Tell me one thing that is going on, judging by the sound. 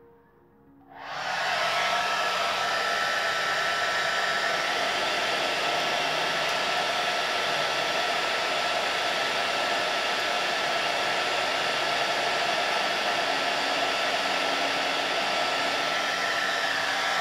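A hair dryer starts up and whirs loudly and steadily.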